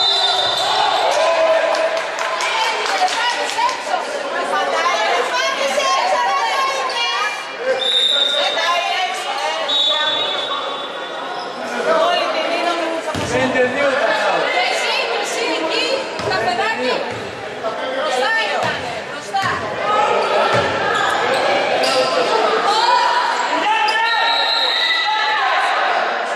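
A referee's whistle blows in short bursts.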